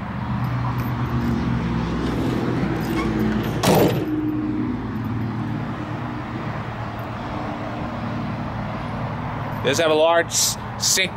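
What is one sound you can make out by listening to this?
A diesel truck engine idles with a steady, deep rumble.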